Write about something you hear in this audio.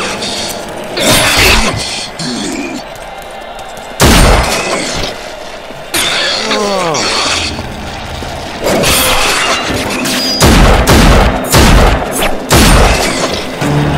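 Loud gunshots fire in short bursts.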